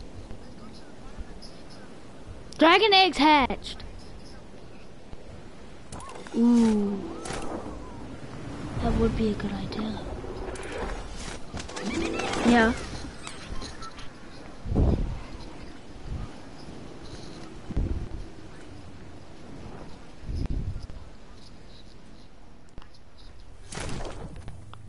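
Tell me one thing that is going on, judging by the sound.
Wind rushes past steadily during a long glide.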